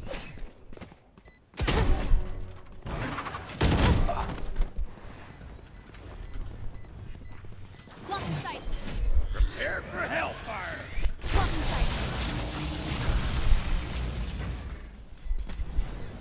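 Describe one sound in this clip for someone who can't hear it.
Blades whoosh through the air.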